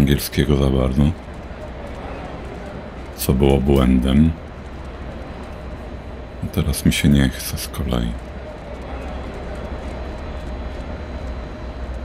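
Footsteps tap on a hard platform floor.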